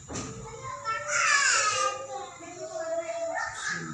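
A baby cries loudly close by.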